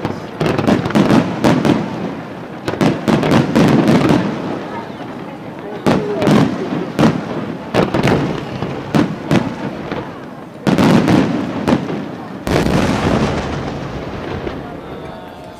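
Fireworks crackle and fizz.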